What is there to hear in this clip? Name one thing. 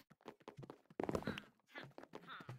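Wooden blocks break with quick, dull knocks.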